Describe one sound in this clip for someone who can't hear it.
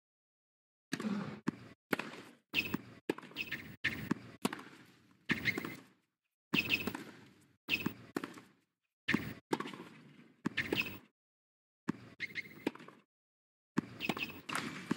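Tennis rackets strike a ball back and forth in a rally.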